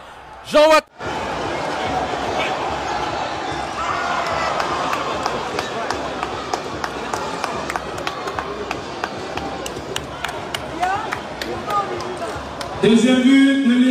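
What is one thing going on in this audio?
A crowd cheers and murmurs in a large open stadium.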